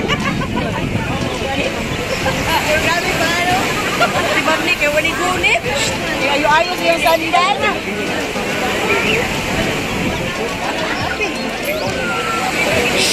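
A crowd of adults chatters and laughs nearby outdoors.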